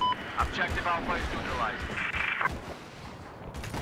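A machine gun fires in short bursts.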